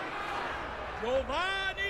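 A man shouts loudly to a crowd.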